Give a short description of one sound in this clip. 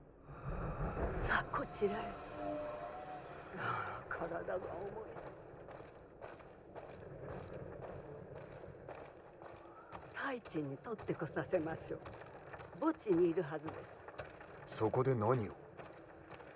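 Footsteps tread slowly across a wooden floor.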